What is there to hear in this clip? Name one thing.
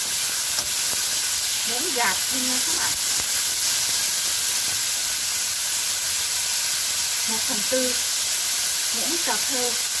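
Diced pork sizzles in a frying pan.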